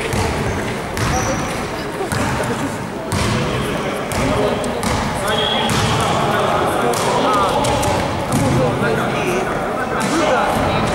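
Men call out to each other during play in an echoing hall.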